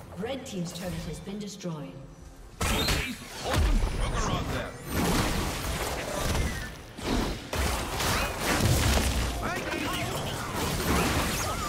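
Magic spell effects whoosh, zap and crackle in a fast fight.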